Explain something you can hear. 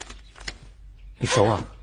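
A young man speaks briefly at close range.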